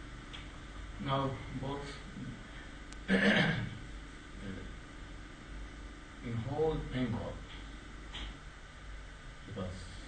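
An elderly man speaks calmly and slowly, close by, with pauses.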